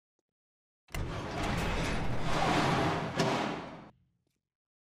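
A heavy metal door grinds slowly open.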